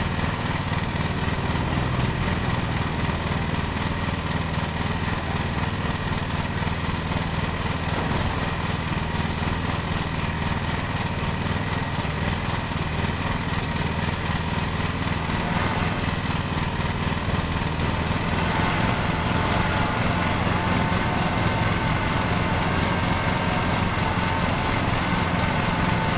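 A small engine hums steadily and grows a little louder as the mower drives off.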